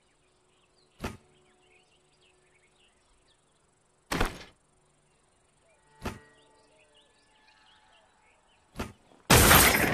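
Game menu clicks sound sharply now and then.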